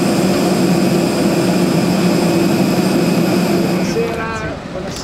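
A jet engine whines steadily nearby.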